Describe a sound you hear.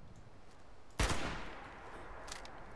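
A gunshot booms, with a short echo after it.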